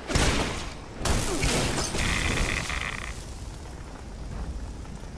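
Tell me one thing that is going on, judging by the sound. Large explosions boom and roar.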